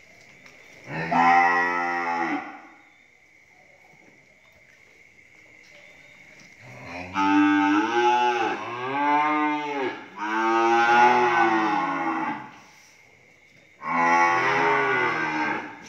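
Cattle moo loudly close by, in long drawn-out calls.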